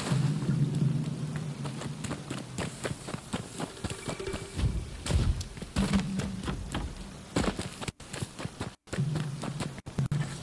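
Footsteps run quickly over ground and grass.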